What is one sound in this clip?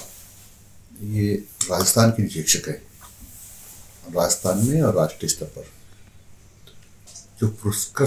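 An elderly man speaks calmly and close to a microphone, in short bursts.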